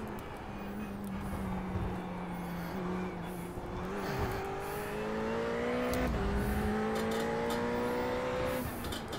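A racing car engine drones and revs, rising through the gears and dropping as it shifts.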